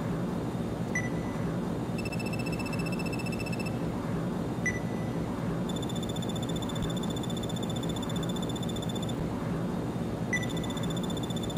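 A short electronic chime sounds as each new dialogue line begins.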